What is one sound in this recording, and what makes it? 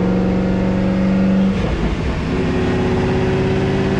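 A car door opens with a clunk.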